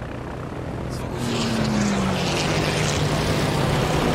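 A warplane bursts into flames and explodes.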